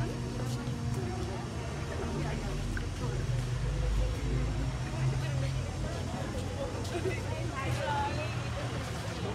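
A crowd of young men and women chatter nearby outdoors.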